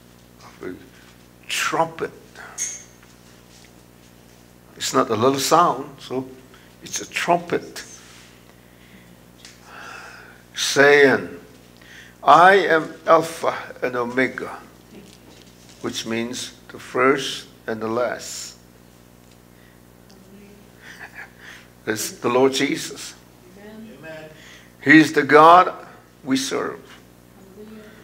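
A middle-aged man speaks slowly and firmly through a microphone, with pauses, in an echoing hall.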